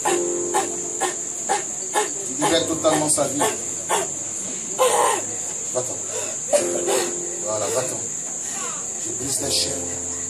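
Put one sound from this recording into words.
A man prays loudly and fervently nearby.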